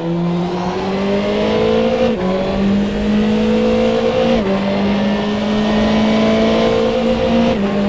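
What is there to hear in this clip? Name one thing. A racing car engine roars, rising in pitch through each gear and dropping sharply at each gear change.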